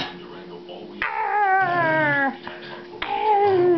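A small dog whines in a high, wavering voice.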